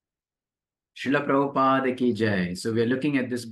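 A man reads aloud calmly and closely into a microphone.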